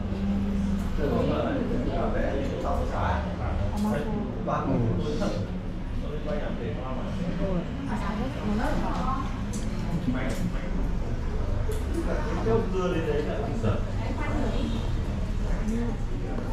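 A spoon scrapes softly against a cup.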